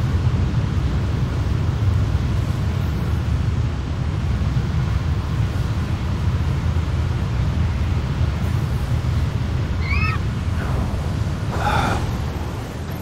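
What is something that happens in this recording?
Wind rushes steadily past in a low roar.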